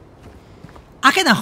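A man speaks loudly and suddenly, close to a microphone.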